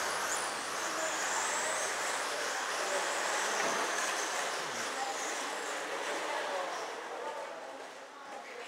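Small electric motors whine at high pitch as remote-control cars race past.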